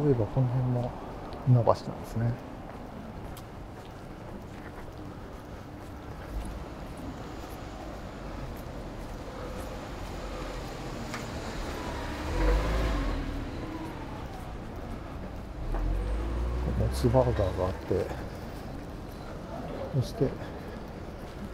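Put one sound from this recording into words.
Footsteps tap on pavement at a steady walking pace.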